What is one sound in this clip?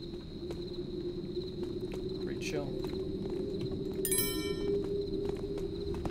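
Footsteps tread softly on stone.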